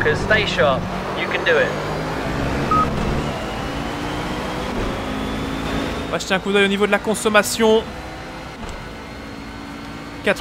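A racing car engine roars and revs as it speeds up through the gears.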